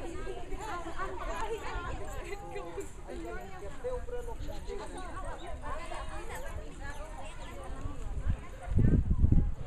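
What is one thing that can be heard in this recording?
A crowd of women chatter loudly nearby outdoors.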